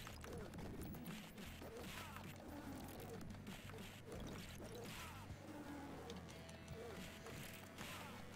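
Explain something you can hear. Punches land with sharp cartoon smacks.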